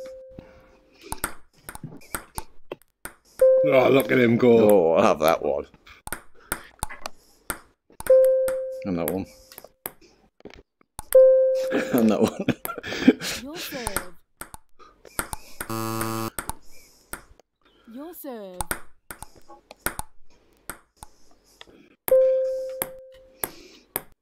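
A ping-pong ball clicks sharply as it bounces on a table and off paddles.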